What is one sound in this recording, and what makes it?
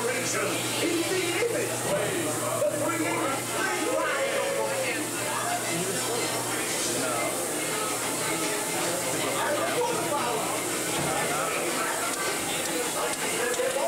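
A crowd of people chatters and talks nearby, heard indoors.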